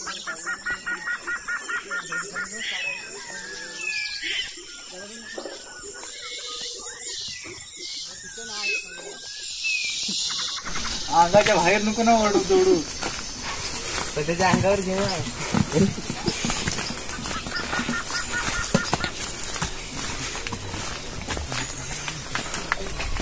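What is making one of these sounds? Footsteps crunch on a dirt path outdoors.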